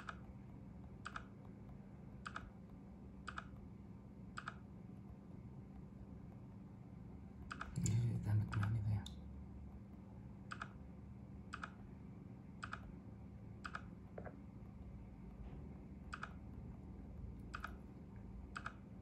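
Short soft pops play from a tablet's small speaker at a steady, even pace.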